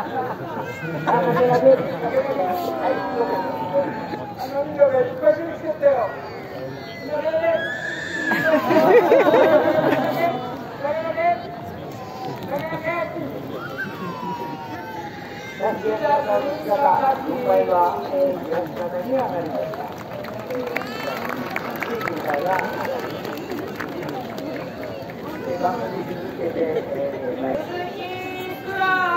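An elderly man calls out through a loudspeaker.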